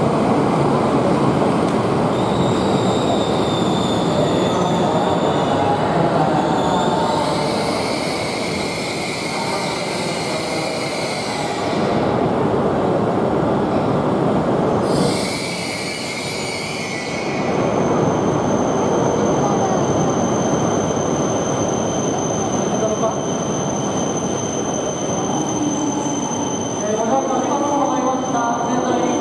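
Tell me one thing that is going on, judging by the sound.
A train rolls slowly past with a steady low rumble.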